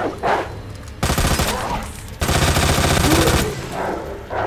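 Gunshots fire in loud bursts.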